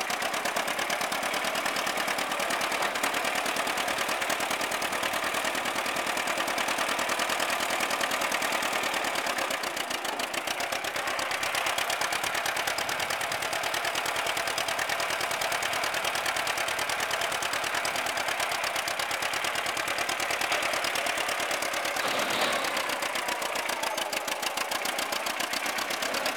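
A vintage two-cylinder John Deere tractor engine putts along at low speed.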